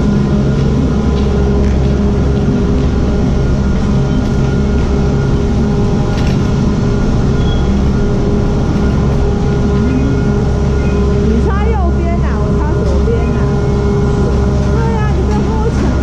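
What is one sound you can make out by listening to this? Gondola machinery hums and rumbles steadily in an echoing station.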